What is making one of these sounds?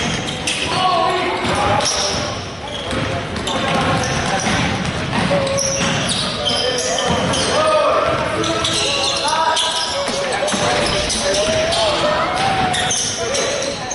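Sneakers squeak sharply on a hard floor in an echoing gym.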